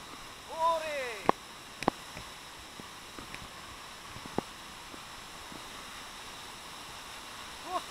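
A waterfall splashes steadily onto rocks.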